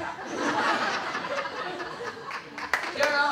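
A young woman speaks cheerfully into a microphone.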